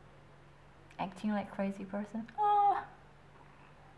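A young woman speaks close by with feeling.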